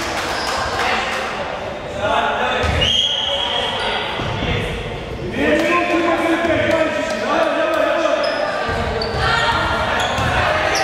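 A crowd chatters and shouts, echoing in a large hall.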